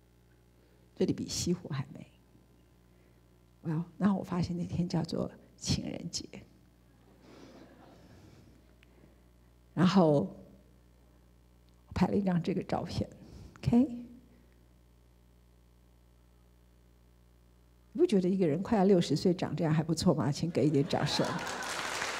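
A woman speaks calmly through a microphone in a large hall, pausing between phrases.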